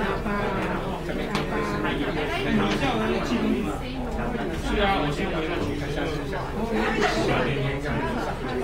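Dishes and cutlery clink on tables.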